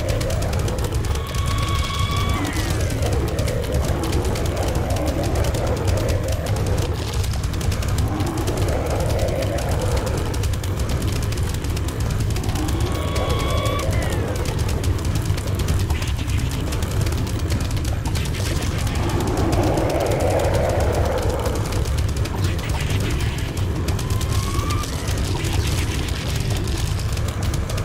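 Rapid popping shots and dull thuds of hits play on without a break.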